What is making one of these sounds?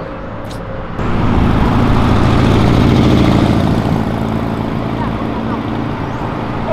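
A small car's engine roars as it drives along a street.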